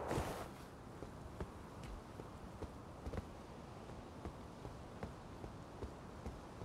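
Footsteps tap on stone paving at a steady walking pace.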